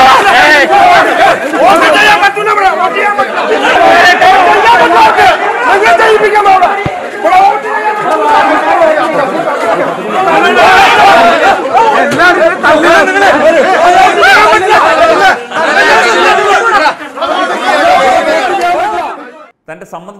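A crowd of men shout and argue loudly in a scuffle outdoors.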